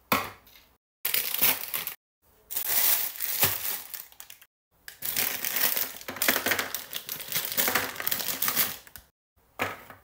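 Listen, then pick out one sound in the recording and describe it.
A plastic wrapper crinkles and rustles close by.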